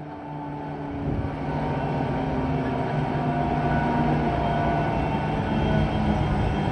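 Train wheels roll and clatter on the rails.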